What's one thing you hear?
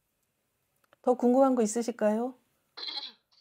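A middle-aged woman speaks calmly into a close microphone.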